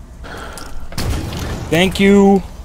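A heavy gun fires a loud blast.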